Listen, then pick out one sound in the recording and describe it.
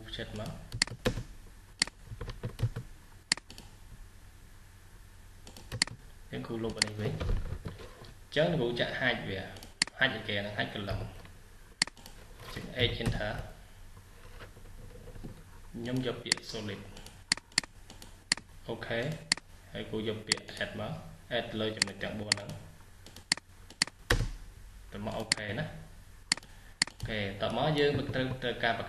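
A computer mouse clicks sharply, now and then.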